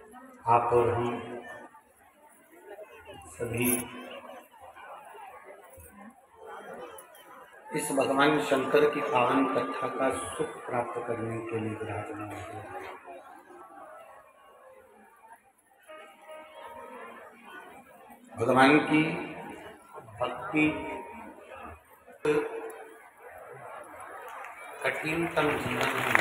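A large crowd murmurs and chatters in a big echoing tent.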